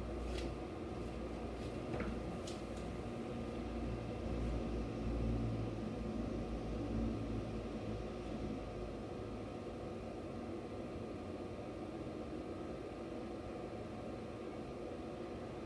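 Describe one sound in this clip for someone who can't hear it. Wind rustles through pine branches outdoors.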